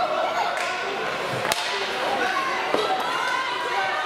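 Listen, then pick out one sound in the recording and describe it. A hockey stick slaps a puck.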